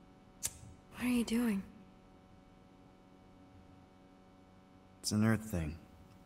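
A young girl speaks calmly, close by.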